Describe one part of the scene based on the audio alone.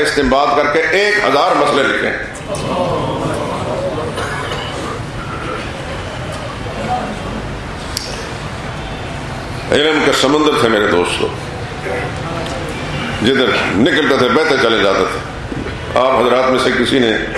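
An older man speaks with emphasis through a microphone and loudspeakers, in an echoing hall.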